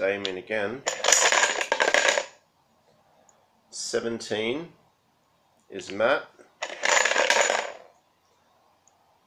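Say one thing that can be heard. Plastic tokens rattle inside a box.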